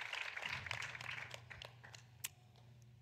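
An audience applauds in a large hall and the clapping fades.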